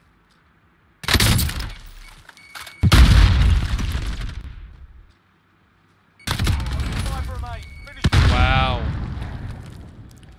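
A rifle fires loud bursts that echo and boom away.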